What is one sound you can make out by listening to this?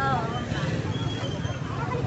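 A motorbike engine idles close by.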